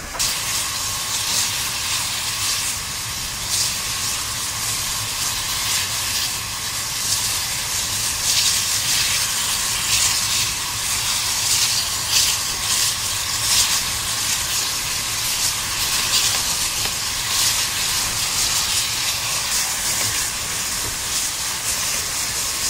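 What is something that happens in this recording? Steam locomotives chuff loudly in rapid bursts.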